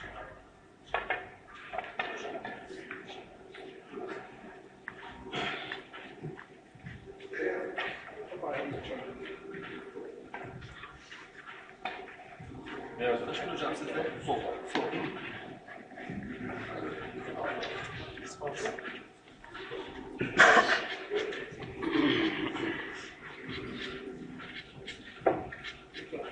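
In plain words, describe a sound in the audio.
Billiard balls click against each other.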